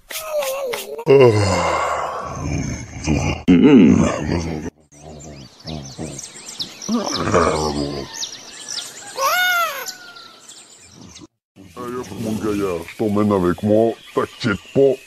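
A man speaks in an exaggerated cartoon voice.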